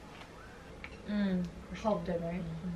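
Two young women talk quietly nearby.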